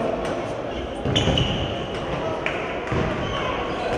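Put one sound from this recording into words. A ball thumps on the court floor.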